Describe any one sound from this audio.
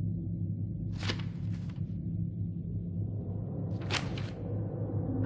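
A paper page turns with a quick rustle.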